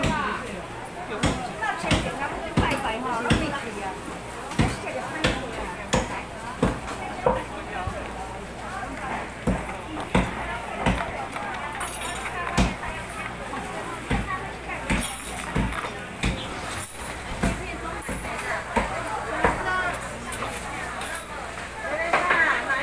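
A crowd of people chatters all around.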